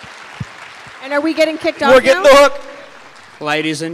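A man speaks animatedly into a microphone in a large hall.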